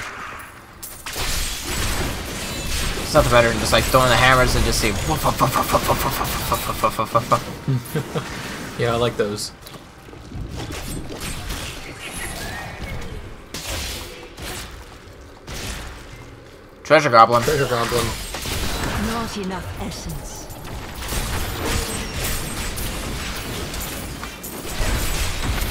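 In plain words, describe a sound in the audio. Weapons clash and magic blasts burst in a busy fight.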